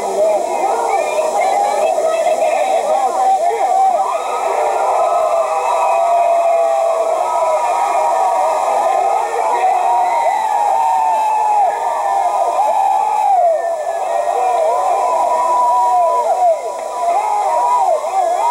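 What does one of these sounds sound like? A crowd shouts and cheers loudly throughout.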